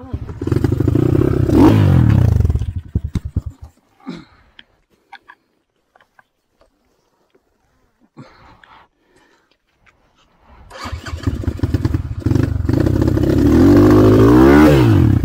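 A dirt bike engine revs hard close by, stops, then roars again.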